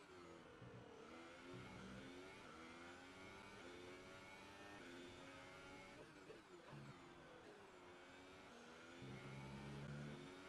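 A racing car engine whines loudly, its pitch rising and falling as the car shifts gears.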